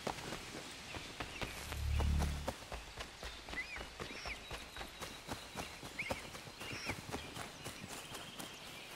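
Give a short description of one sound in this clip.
Footsteps run over grassy ground.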